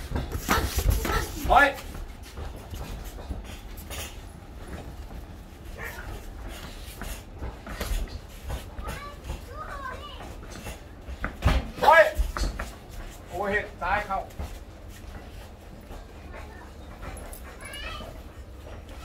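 Bare feet shuffle and stamp on a hard floor.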